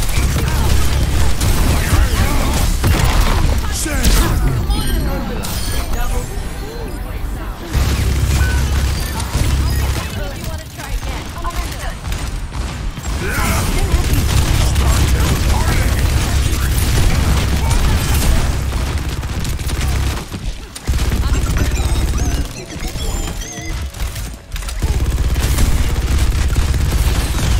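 Rapid gunfire rattles in heavy bursts.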